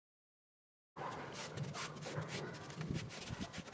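A cloth wipes along a window frame with a soft rubbing sound.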